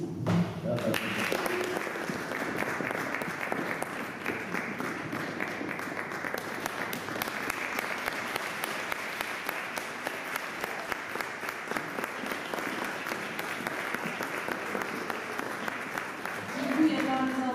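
An audience applauds steadily in an echoing room.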